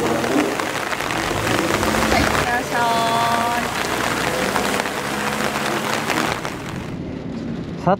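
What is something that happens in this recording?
Heavy rain hisses steadily on wet pavement outdoors.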